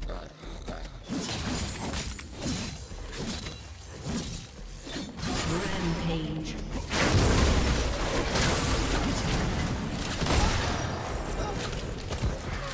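Magic blasts and weapon strikes crash and whoosh in a fast fight.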